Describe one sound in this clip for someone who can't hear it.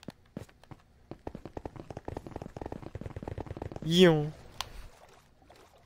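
Paddles splash as a small boat rows through water.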